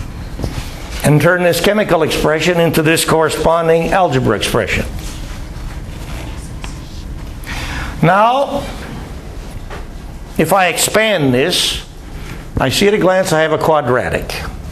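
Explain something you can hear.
An elderly man speaks calmly in a room.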